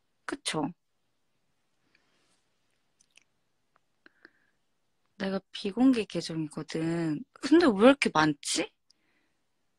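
A young woman speaks softly and playfully close to a microphone.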